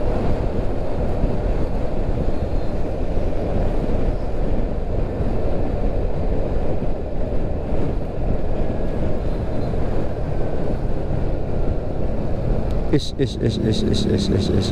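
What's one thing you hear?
A car drives steadily along a road with a low rumble of tyres and wind.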